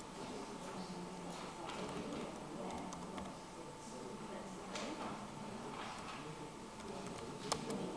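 A laptop keyboard clicks under typing.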